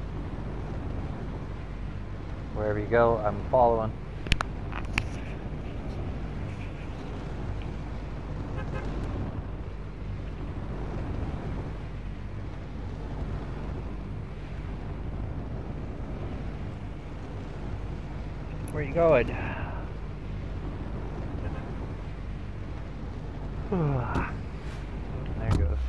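Wind rushes steadily past a gliding craft.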